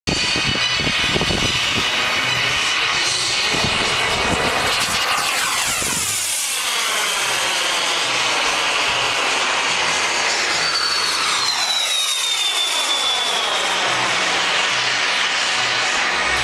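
Jet aircraft roar loudly overhead, their pitch sweeping down as they pass.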